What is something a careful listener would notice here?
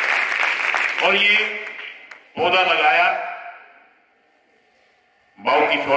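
An elderly man speaks forcefully through a microphone and loudspeakers, echoing in a large space.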